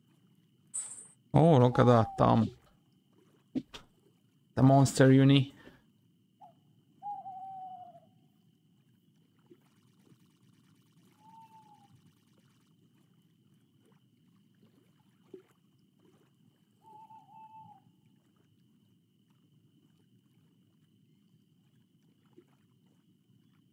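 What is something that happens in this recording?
Water laps gently against a boat.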